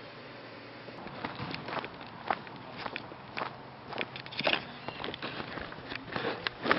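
Footsteps crunch on dry leaves and twigs close by.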